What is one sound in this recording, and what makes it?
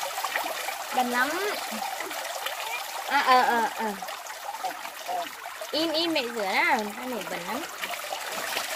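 A young child calls out nearby.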